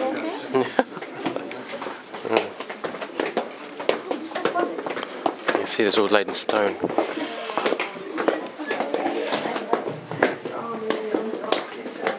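Footsteps thud on stairs.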